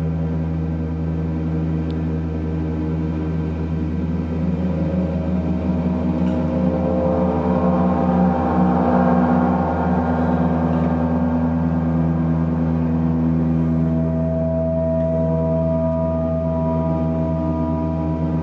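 Large gongs hum and shimmer in a deep, swelling drone that builds and slowly fades.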